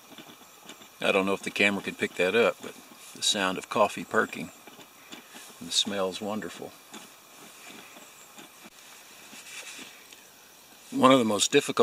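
A man talks calmly, close by.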